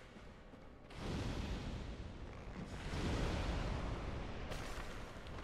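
A fireball whooshes and bursts.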